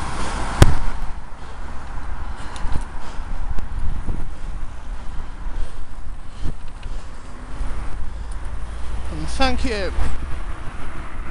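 Wind rumbles across a moving bicycle.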